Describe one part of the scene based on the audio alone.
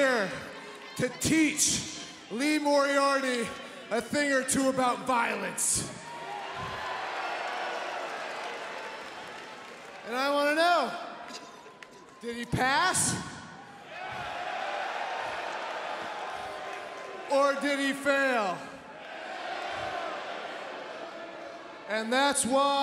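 A large crowd chants and cheers loudly.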